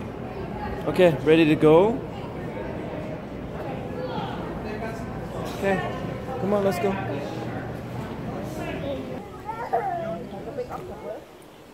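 A crowd of people murmurs in an echoing hall.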